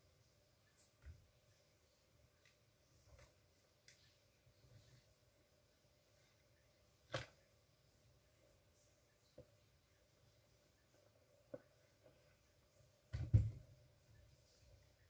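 Objects knock and clatter on a table nearby.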